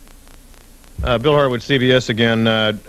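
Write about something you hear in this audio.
A man speaks loudly over a radio link.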